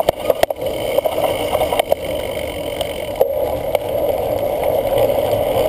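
A cyclocross bike rattles and clatters over bumpy grass.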